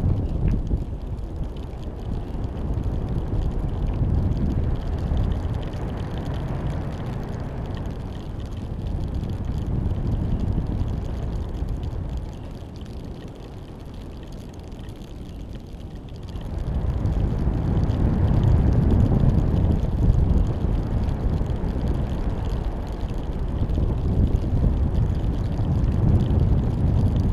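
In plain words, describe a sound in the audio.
Wind rushes and buffets loudly against the microphone.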